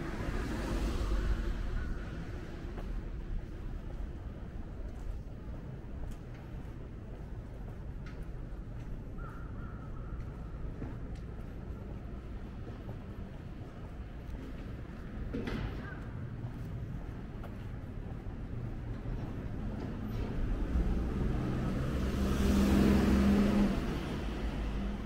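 Footsteps walk along a quiet street outdoors.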